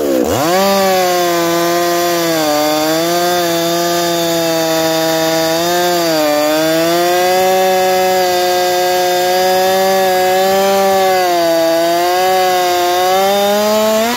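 A chainsaw chain cuts through wood.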